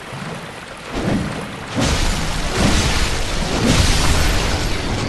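Heavy blows strike and thud.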